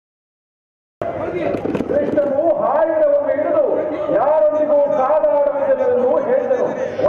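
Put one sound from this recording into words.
A man sings loudly through loudspeakers.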